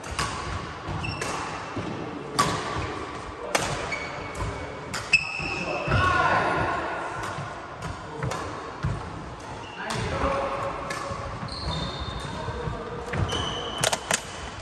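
Sports shoes squeak sharply on a hard floor.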